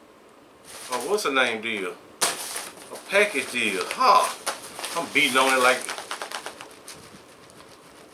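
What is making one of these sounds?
A paper package crinkles and rustles.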